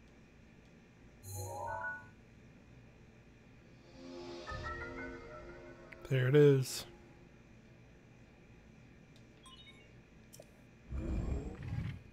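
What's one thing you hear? Soft electronic chimes sound as a menu opens and closes.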